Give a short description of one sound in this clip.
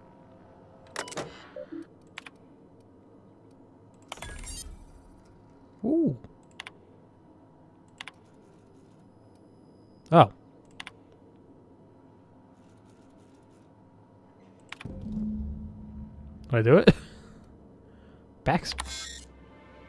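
A computer terminal gives short beeps and clicks as menu options are selected.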